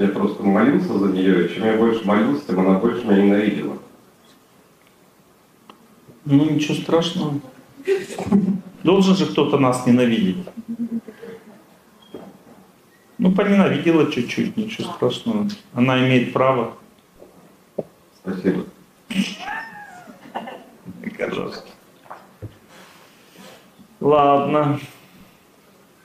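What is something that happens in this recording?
An older man speaks calmly into a microphone, in short phrases with pauses.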